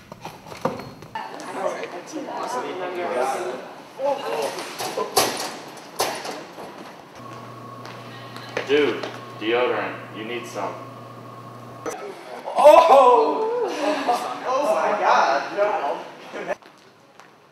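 Teenage boys and girls talk in an echoing hallway.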